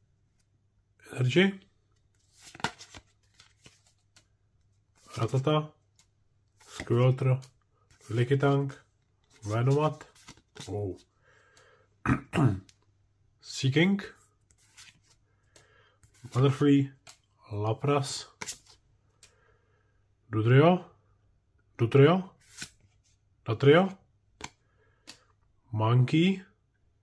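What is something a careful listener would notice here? Playing cards slide and flick softly against each other in hands.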